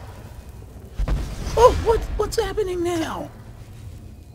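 A blast of magic bursts with a loud rumble.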